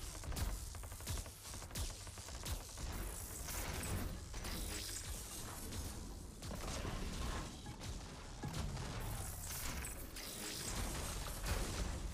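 Electric weapons crackle and zap.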